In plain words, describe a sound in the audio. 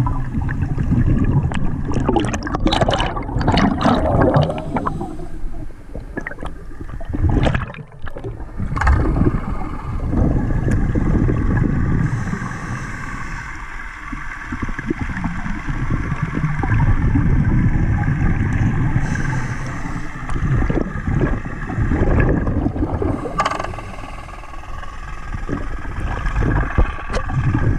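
Water rushes and rumbles low and muffled.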